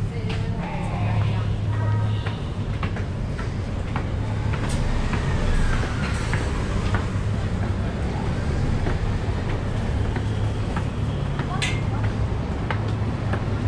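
Footsteps climb concrete stairs.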